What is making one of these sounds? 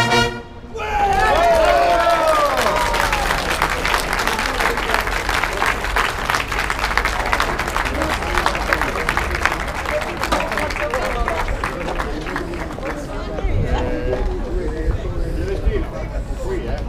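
A brass band plays loudly outdoors.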